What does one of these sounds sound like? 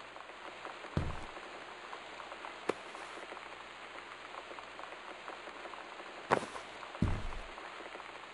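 A sheet of paper rustles as it is picked up.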